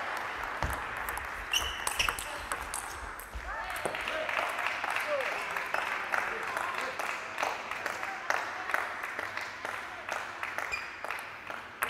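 Paddles hit a table tennis ball back and forth in a quick rally.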